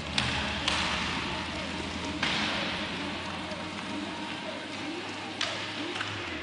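Inline skate wheels roll and scrape across a hard floor.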